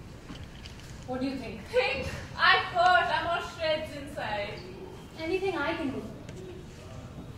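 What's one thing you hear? A young woman speaks with feeling.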